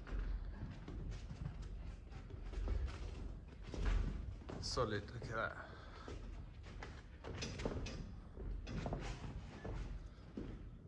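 Feet shuffle and thud on a padded floor.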